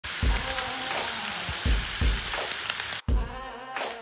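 Meat sizzles loudly on a hot griddle.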